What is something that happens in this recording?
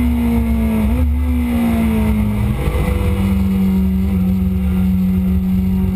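A motorcycle engine roars loudly up close, its pitch dropping and rising with gear shifts.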